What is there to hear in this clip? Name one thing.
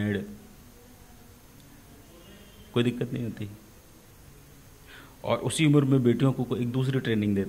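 A middle-aged man speaks calmly into a microphone close by, in short bursts with pauses.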